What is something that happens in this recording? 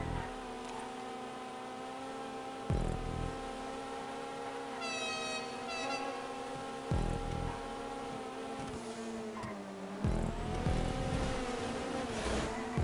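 A car engine drones steadily at high speed, shifting pitch now and then.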